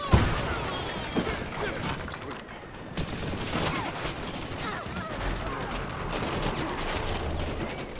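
Rapid blaster shots fire in quick bursts.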